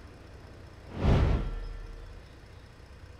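A car crashes into a tree with a loud thud.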